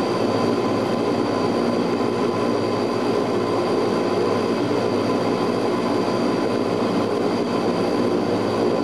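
Propeller engines drone loudly and steadily from inside an aircraft cabin.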